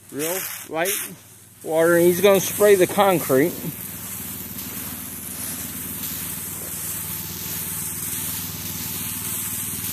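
A pressure washer jet hisses steadily against pavement.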